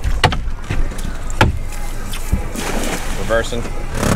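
A cast net splashes into the water.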